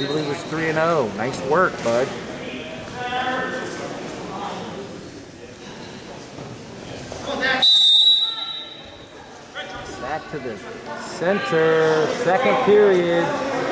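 Men shout encouragement loudly in an echoing gym.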